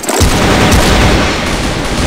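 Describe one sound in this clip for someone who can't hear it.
Rapid rifle gunfire rattles.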